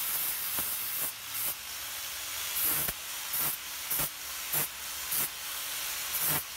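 An angle grinder whines steadily as it grinds metal.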